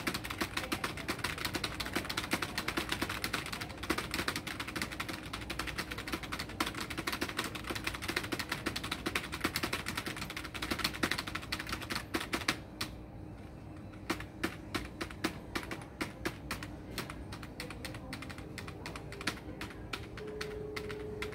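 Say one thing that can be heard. Fingers tap keyboard keys rapidly.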